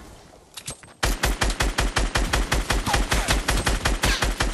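A rifle fires in rapid, steady bursts of shots.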